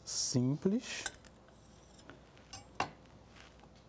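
A knife cuts through a vegetable on a board.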